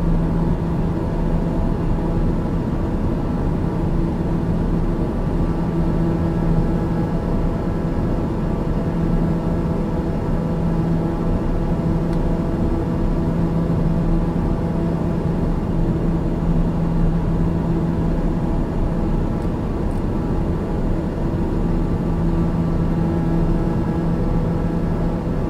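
An aircraft engine drones steadily inside a cockpit.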